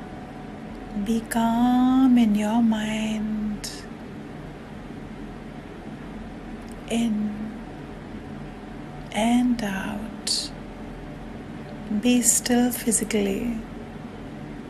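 A woman speaks calmly, in short phrases, close to a microphone.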